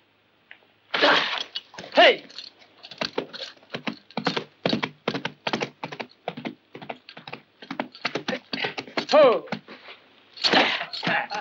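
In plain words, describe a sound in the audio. A horse gallops, hooves thudding on sand.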